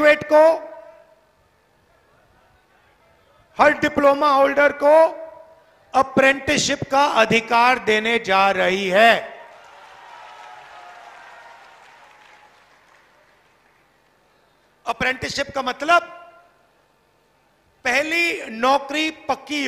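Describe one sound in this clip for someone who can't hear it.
A middle-aged man speaks forcefully into a microphone over loudspeakers, in short bursts with pauses.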